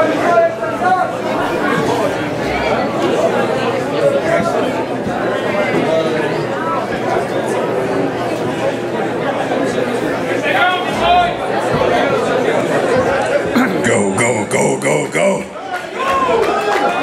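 A crowd shouts and cheers loudly all around.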